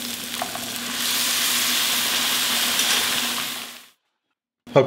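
Liquid pours into a hot pan with a loud hiss.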